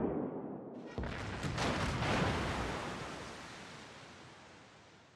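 Shells explode in the water nearby with a heavy roar.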